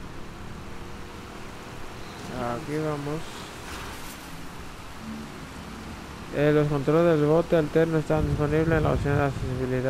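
Rain falls steadily on water.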